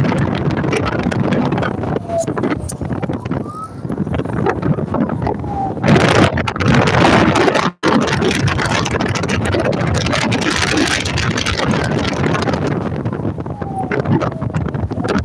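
Wind rushes loudly past a moving vehicle outdoors.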